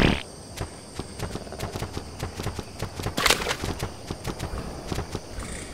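Paws patter quickly on rocky ground.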